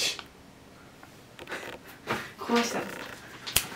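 A plastic wrapper crinkles in someone's hands.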